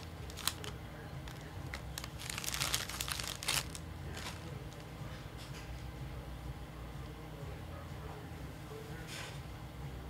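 Cards rustle and slide against each other.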